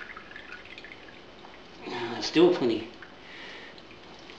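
Liquid drips and trickles into a metal pot.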